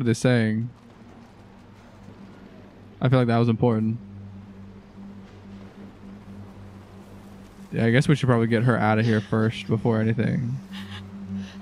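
A man speaks tensely and quietly up close.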